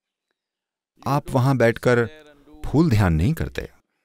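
An elderly man speaks slowly and calmly, close to a microphone.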